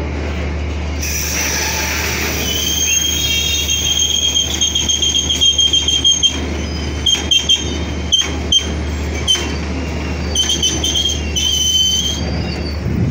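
Train wheels squeal shrilly against the rails.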